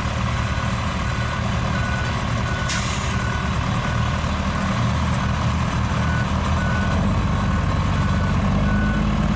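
A diesel truck engine rumbles steadily nearby.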